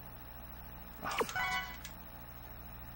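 A game menu chimes as options are selected.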